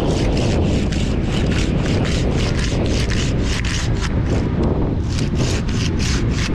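Climbing gear scrapes and rustles against tree bark in quick, repeated bursts.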